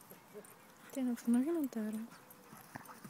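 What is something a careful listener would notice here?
A dog growls briefly while playing.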